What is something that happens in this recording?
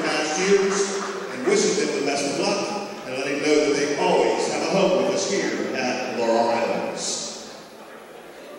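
A man announces over a loudspeaker in a large echoing hall.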